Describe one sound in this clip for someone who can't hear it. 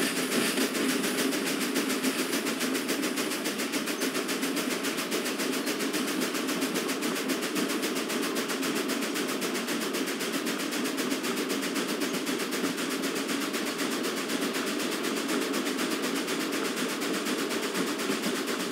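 A steam locomotive chugs steadily with rapid puffing.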